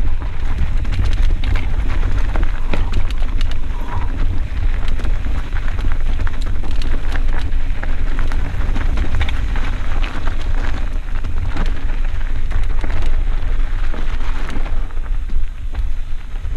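Mountain bike tyres crunch and rattle over rocks and roots on a dirt trail.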